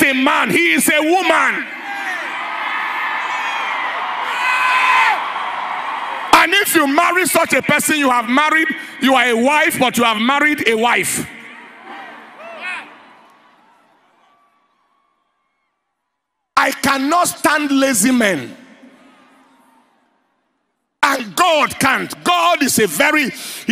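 A man preaches loudly and with animation through a microphone in a large echoing hall.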